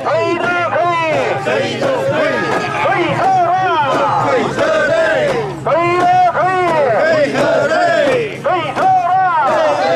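A crowd of men chant loudly in rhythm close by.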